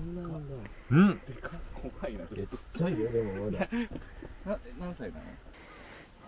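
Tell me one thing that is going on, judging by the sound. A young man speaks softly close by.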